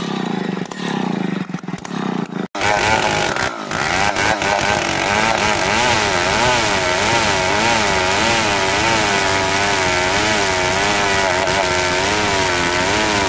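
A gasoline chainsaw under load rips lengthwise through a log.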